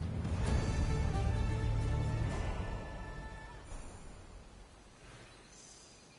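A game chime rings out as a quest completes.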